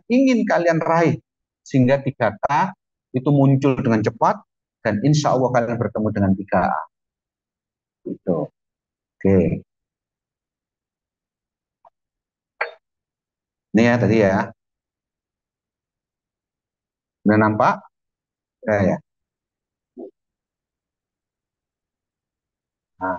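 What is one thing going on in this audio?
A middle-aged man speaks calmly into a microphone, heard through an online call, with pauses.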